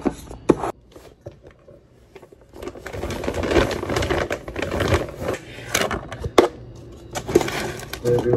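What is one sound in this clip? A fabric bag rustles and scrapes.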